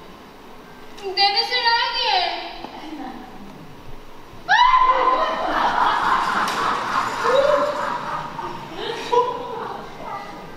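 A young woman speaks expressively in a large hall.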